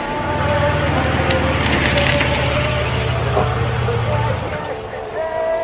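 A truck engine idles with a low rumble, then shuts off.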